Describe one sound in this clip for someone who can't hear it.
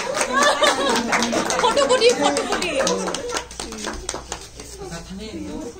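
Middle-aged women and an elderly man chatter and laugh close by.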